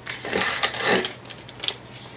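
A paper trimmer blade slides and cuts through paper.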